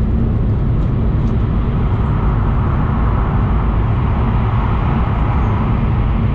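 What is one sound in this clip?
A vehicle's interior rumbles with a steady low drone as it moves.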